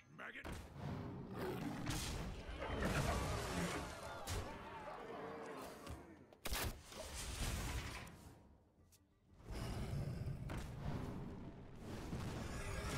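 Fantasy card game effects whoosh, clash and burst.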